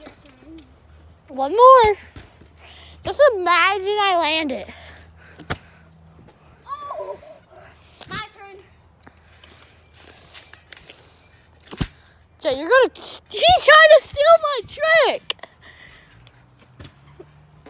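A plastic bottle thumps onto a trampoline mat.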